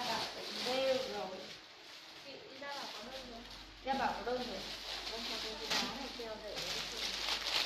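Plastic bags rustle as they are handled.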